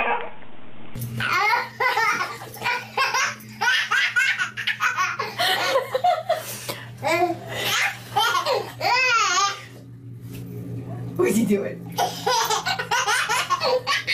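A small baby babbles and squeals.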